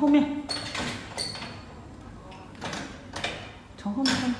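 A wire crate door rattles.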